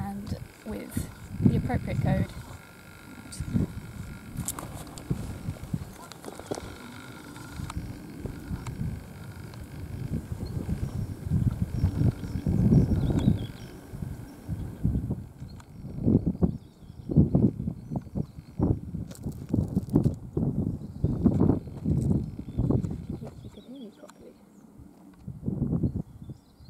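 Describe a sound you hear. Wind blows in strong gusts outdoors.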